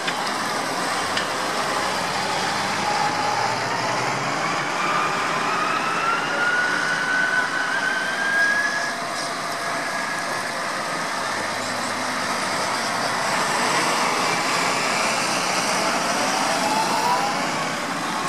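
Tractor tyres roll over a wet road.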